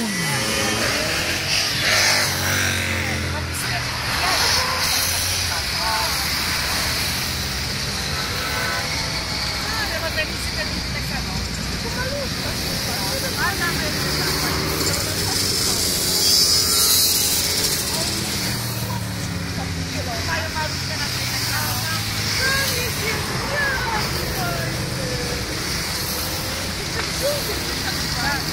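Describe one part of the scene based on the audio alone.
A long line of motorcycle engines rumbles and roars past close by.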